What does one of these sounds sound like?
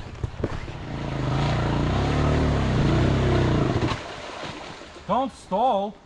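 A motorbike engine rumbles nearby.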